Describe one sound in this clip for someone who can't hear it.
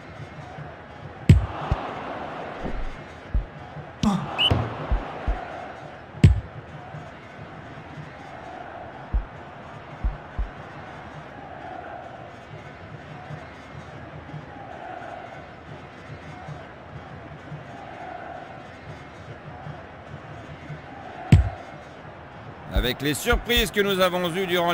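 A video game stadium crowd murmurs and cheers.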